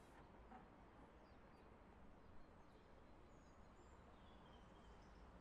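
A train's motors hum low and steady while it stands idle.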